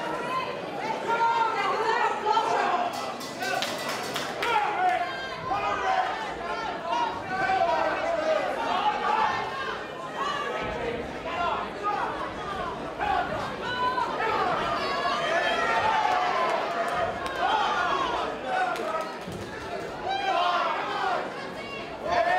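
A crowd shouts and cheers in a large hall.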